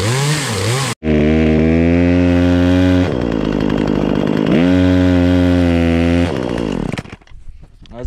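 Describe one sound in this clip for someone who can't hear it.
A chainsaw engine roars loudly, revving up and dropping back.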